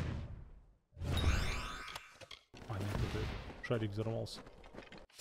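A sword swings with a whoosh.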